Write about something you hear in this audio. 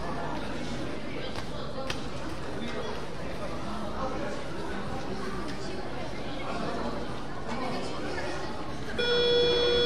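Voices of young players and adults murmur and call out in a large echoing gym.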